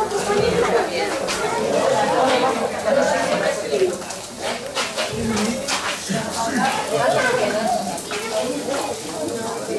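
Many footsteps shuffle on a stone street.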